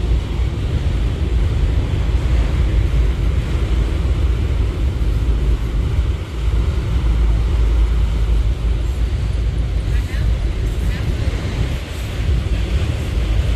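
Train wheels clack and squeal over rail joints.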